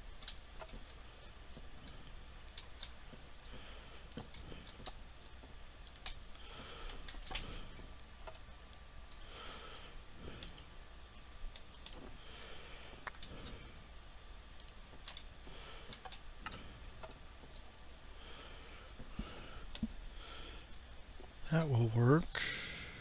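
Blocks click softly as they are placed.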